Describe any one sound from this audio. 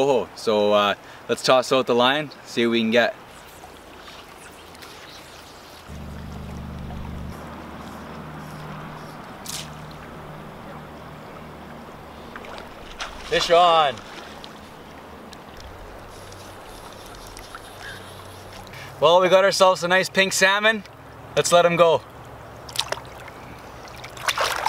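A river flows gently.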